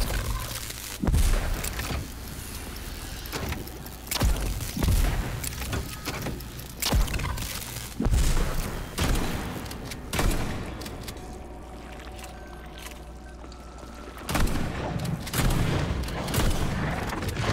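Game gunfire and electric blasts crack and boom loudly.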